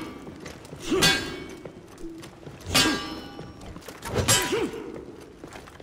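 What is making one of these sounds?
Metal weapons clash and ring out in sharp bursts.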